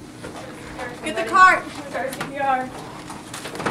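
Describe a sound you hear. A young woman speaks quickly nearby.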